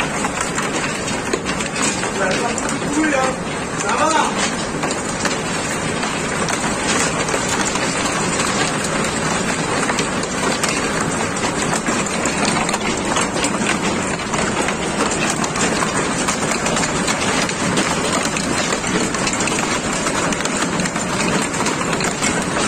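Hail pours down hard, pattering and rattling on the ground.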